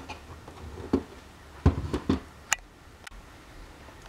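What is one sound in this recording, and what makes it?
A plastic case clicks open.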